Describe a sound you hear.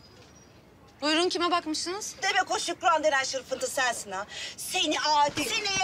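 A middle-aged woman speaks angrily, close by.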